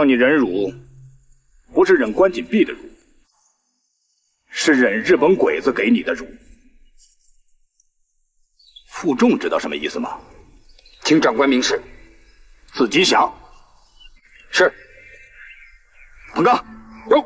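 A middle-aged man speaks sternly and forcefully, close by.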